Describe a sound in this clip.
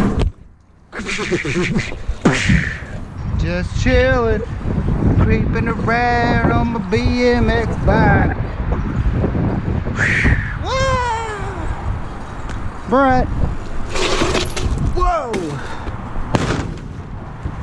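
Bicycle tyres roll and rumble over concrete.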